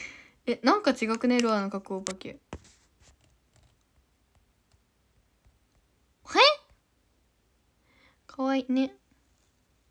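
A young woman speaks playfully and close up, in short bursts with pauses.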